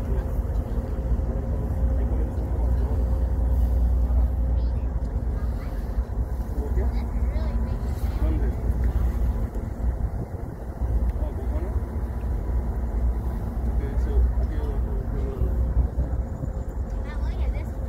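Wind blows across the open deck.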